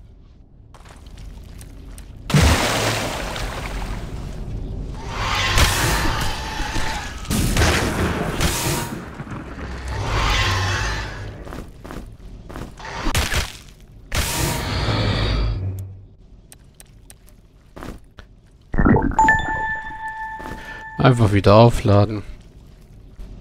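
Fireballs burst with loud roaring whooshes.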